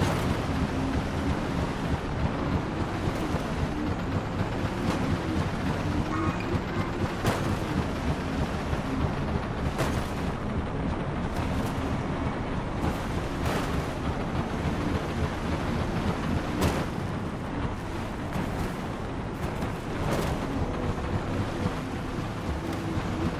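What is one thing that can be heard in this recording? A hover engine hums and rumbles steadily.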